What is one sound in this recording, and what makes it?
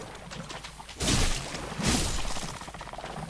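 A sword swishes and strikes.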